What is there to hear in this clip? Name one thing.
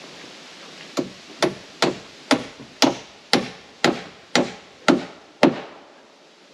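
A hammer strikes nails into wood in quick, steady blows.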